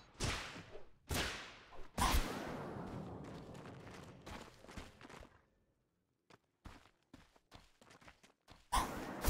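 Magic spells burst with sharp, whooshing blasts.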